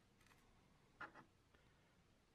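A small metal clip clicks.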